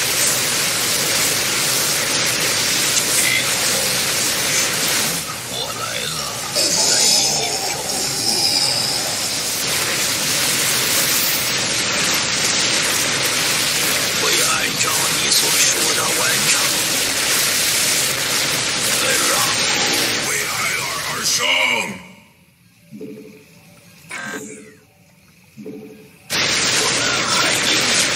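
Laser blasts and explosions crackle in a fierce battle.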